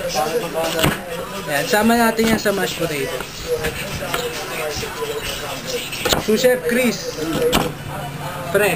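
A knife knocks sharply on a wooden cutting board.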